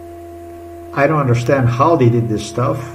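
A man speaks calmly and close to a microphone.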